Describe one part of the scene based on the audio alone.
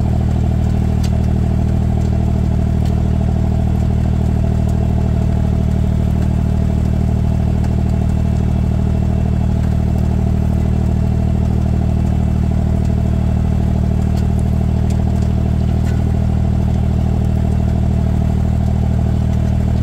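A plough blade scrapes through the soil.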